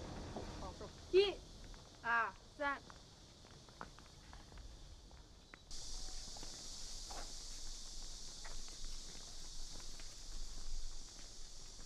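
Footsteps walk on a path outdoors.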